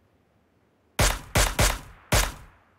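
A sniper rifle fires several sharp shots in a video game.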